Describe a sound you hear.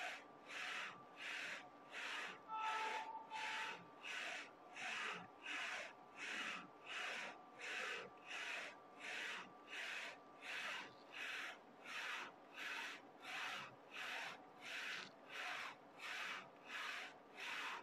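A printer head whirs as it sweeps rapidly back and forth in a steady rhythm.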